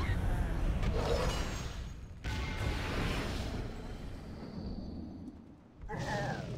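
Heavy weapon blows thud and crash in a fierce fight.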